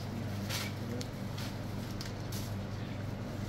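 A plastic bag rustles close by.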